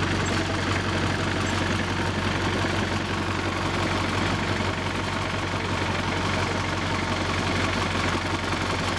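A small steam locomotive chuffs and hisses as it pulls slowly away.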